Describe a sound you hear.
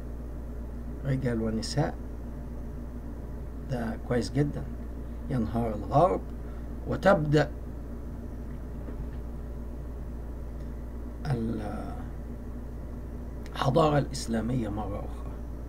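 A middle-aged man speaks calmly in short phrases through an online call.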